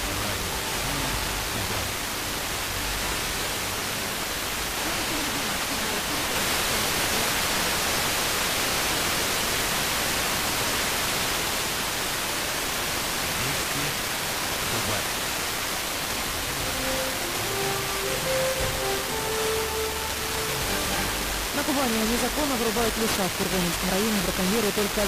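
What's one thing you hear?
Radio static hisses and crackles steadily.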